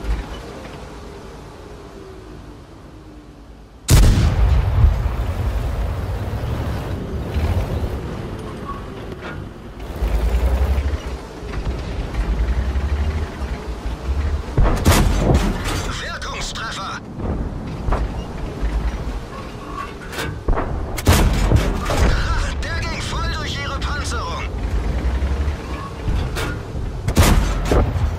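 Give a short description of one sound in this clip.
A tank engine rumbles low.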